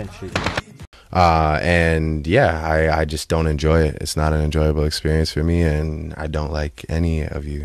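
A young man sings through a handheld microphone.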